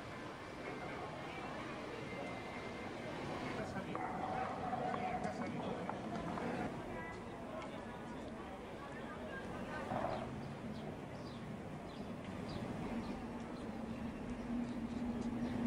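A crowd of passers-by murmurs outdoors.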